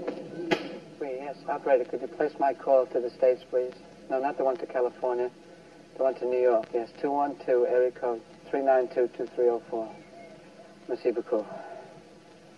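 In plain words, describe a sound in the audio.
A man speaks calmly and quietly into a phone.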